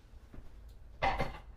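A cardboard box rustles and bumps close by.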